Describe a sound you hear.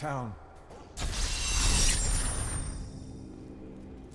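A bright triumphant chime rings out and sparkles away.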